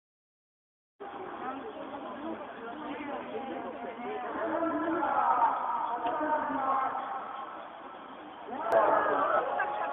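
Several men and women talk anxiously close by, outdoors.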